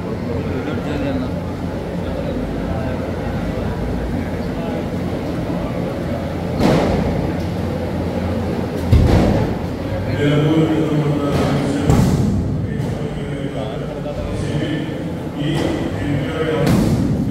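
A crowd of men murmurs and talks in a large echoing hall.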